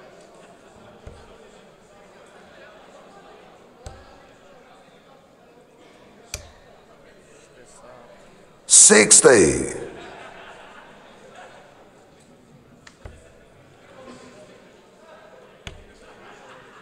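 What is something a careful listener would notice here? Darts thud into a dartboard one at a time.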